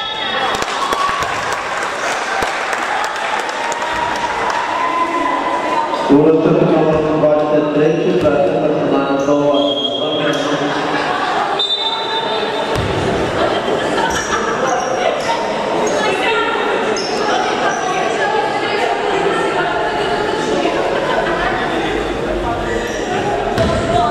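Spectators and players shout and chatter in a large echoing hall.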